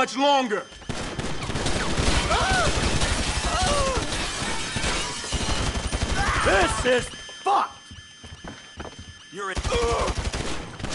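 A gun fires in rapid bursts at close range.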